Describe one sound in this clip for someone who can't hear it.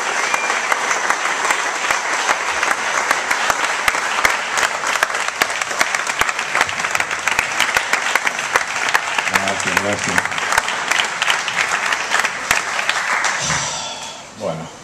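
An audience claps and cheers loudly in a hall.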